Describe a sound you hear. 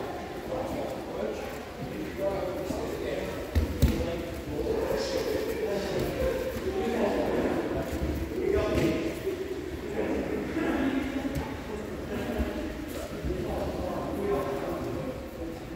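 Several men talk with one another in a large echoing hall.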